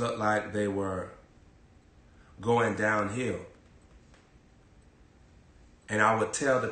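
A young man speaks calmly and close by, in short phrases with pauses.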